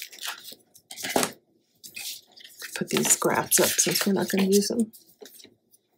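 Paper rustles and slides as hands handle it.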